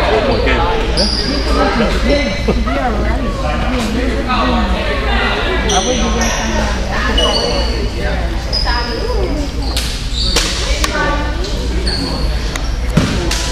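Sneakers squeak sharply on the wooden court.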